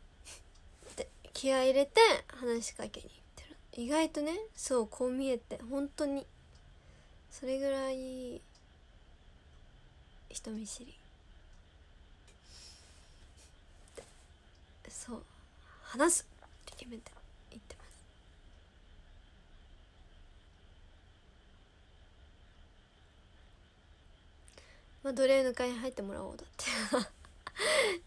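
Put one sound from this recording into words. A young woman talks close to a microphone, with pauses.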